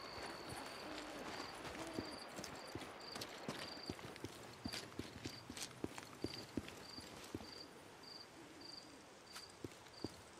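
Footsteps crunch over gravel and grass at a walking pace.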